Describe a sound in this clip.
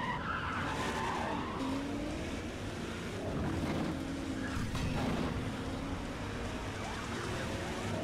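Police sirens wail close behind.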